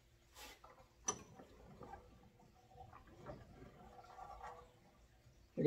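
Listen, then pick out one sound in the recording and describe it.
A metal vise handle turns with light scraping and clicks.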